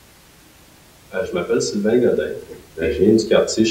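A middle-aged man speaks calmly into a clip-on microphone.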